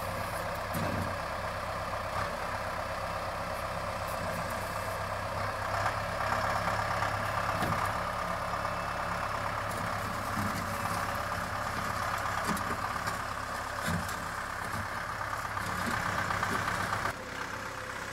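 A tractor bucket scrapes and knocks against dirt.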